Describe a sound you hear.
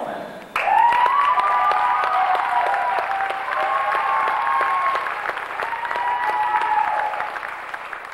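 A seated crowd claps in an echoing hall.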